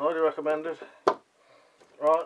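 A metal tool clacks down onto a wooden surface.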